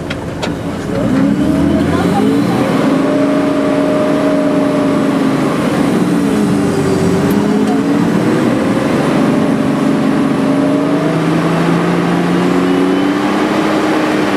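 A heavy vehicle's engine roars and strains as it climbs a slope.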